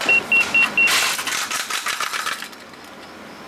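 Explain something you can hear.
An alarm clock clatters onto a hard floor.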